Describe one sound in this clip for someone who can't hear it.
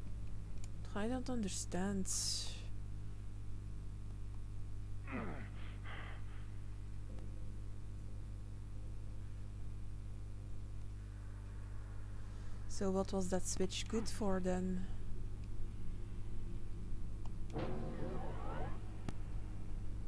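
A young woman speaks calmly into a close microphone, in short bursts.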